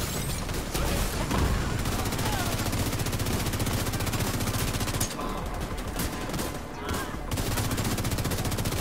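Rapid gunfire rattles in long bursts.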